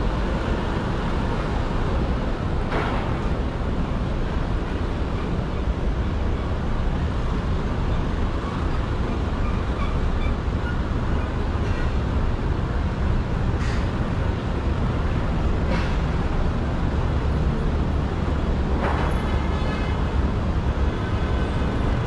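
Steady city traffic rumbles outdoors.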